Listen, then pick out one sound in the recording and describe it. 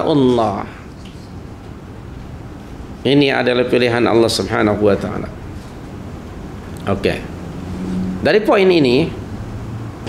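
An older man speaks calmly and clearly into a close microphone, in short phrases with pauses.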